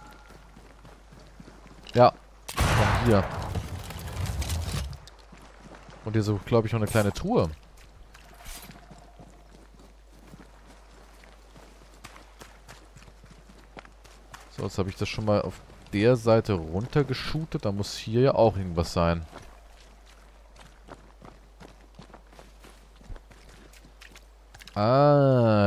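Footsteps run over grass and gravel.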